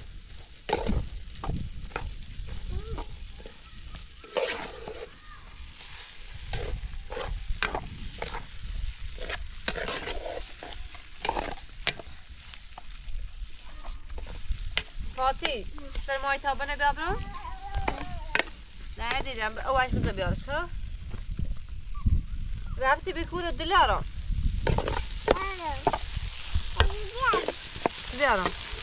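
A metal spoon scrapes and clinks against a cooking pot.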